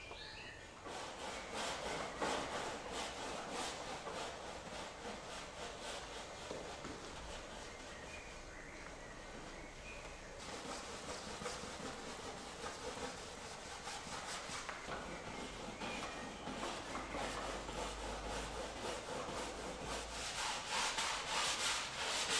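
A brush scrubs and swishes across canvas.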